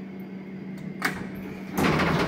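A lift button clicks once when pressed.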